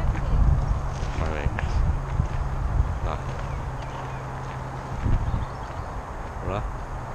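Bicycle tyres roll and crunch over a gravel path.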